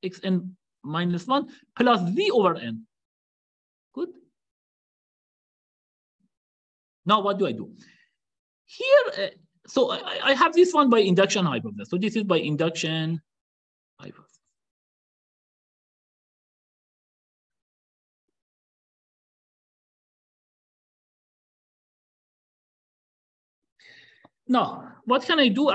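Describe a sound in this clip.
A man explains calmly over an online call, pausing between phrases.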